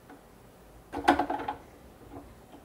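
An adjustable wrench clinks against a metal collet nut.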